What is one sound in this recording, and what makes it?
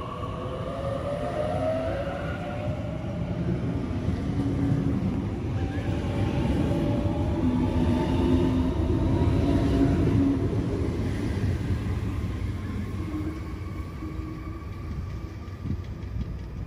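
Train wheels rumble and clatter on the rails as the train speeds past.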